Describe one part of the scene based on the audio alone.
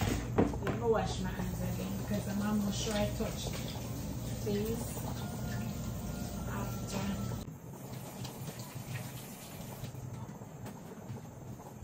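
Dishes clatter in a sink.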